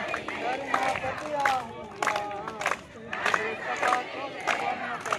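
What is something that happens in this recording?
A crowd of men and women chant slogans loudly outdoors.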